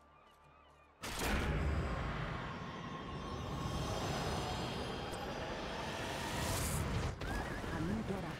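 A magical shimmer swells and rings out brightly.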